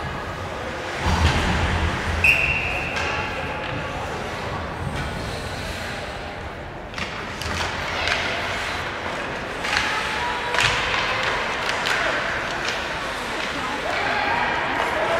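Hockey sticks clack against a puck and the ice.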